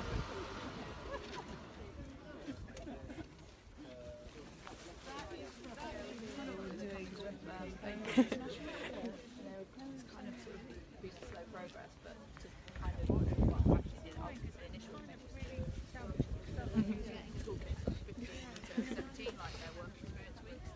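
A crowd of men and women talk nearby outdoors.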